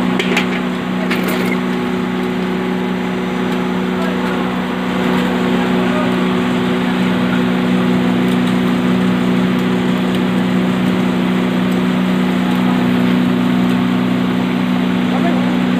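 Factory machinery hums loudly and steadily.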